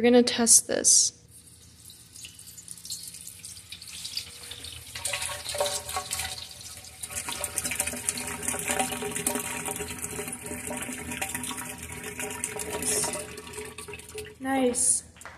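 Water sprays and splashes into a metal basin.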